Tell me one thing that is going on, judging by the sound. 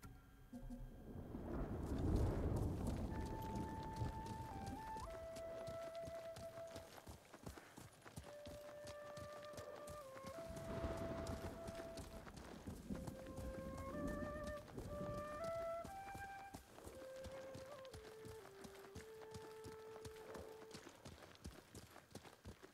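Horses' hooves thud steadily on a dirt path.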